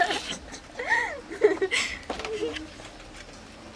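Young women laugh and talk together nearby.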